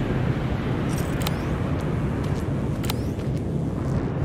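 Soft footsteps shuffle on concrete.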